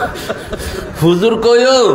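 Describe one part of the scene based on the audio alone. A man chants loudly in a drawn-out singing voice through a microphone.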